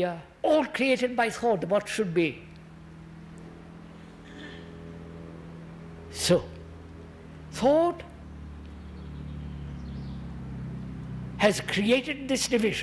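An elderly man speaks slowly and thoughtfully into a microphone, with long pauses.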